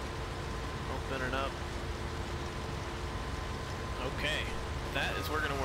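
A combine harvester engine rumbles steadily.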